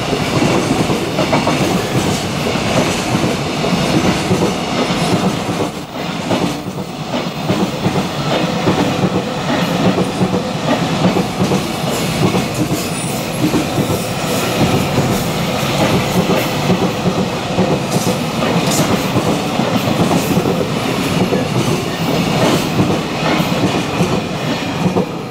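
A long freight train rumbles past close by, its wheels clattering rhythmically over the rail joints.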